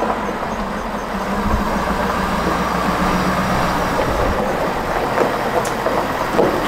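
Tyres crunch on gravel.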